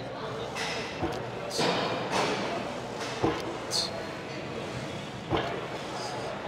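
Weight plates on a leg press machine clank and thud.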